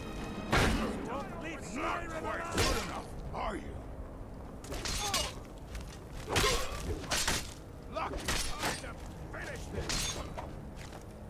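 Blades clash and strike hard in a fight.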